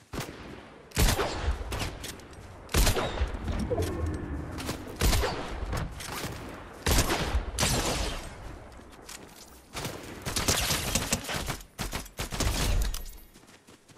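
Crossbow bolts fire with sharp thuds.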